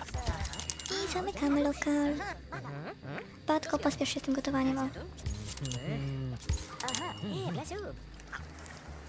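Game characters chatter in a babbling, made-up speech.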